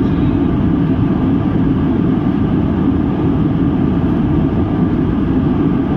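Jet engines roar steadily from inside an airplane cabin in flight.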